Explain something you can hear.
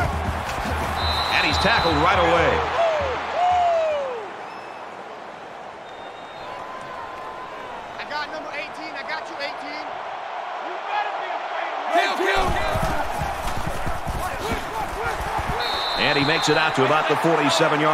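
Football players collide in tackles with dull thuds.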